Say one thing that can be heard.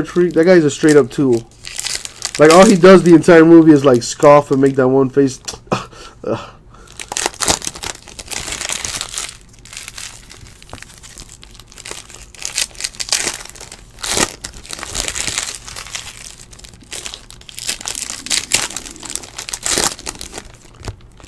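Foil wrappers crinkle and rustle as they are torn open close by.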